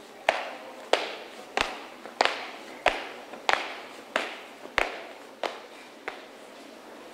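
Marching feet stamp in a steady rhythm outdoors.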